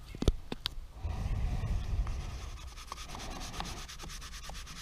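A plastic squeegee scrapes and rubs across paper tape.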